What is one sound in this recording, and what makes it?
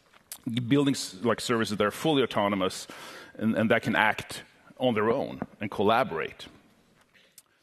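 A middle-aged man speaks with animation through a headset microphone.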